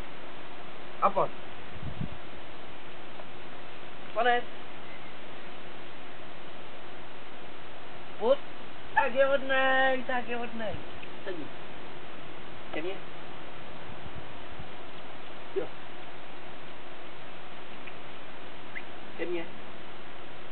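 A man gives short commands to a dog outdoors.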